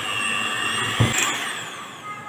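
An electric hand mixer switches off with a click.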